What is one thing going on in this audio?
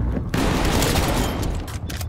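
A shotgun fires.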